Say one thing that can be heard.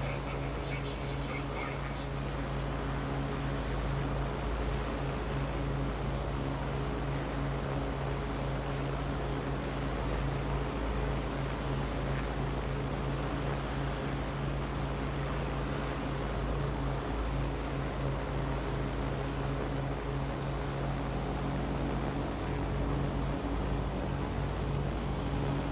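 Drone rotors hum steadily and loudly throughout.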